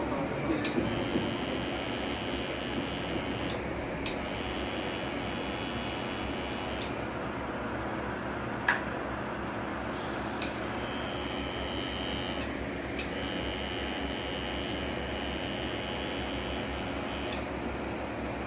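A tattoo machine buzzes against skin.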